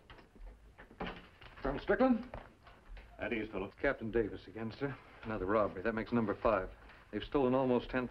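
A middle-aged man speaks firmly.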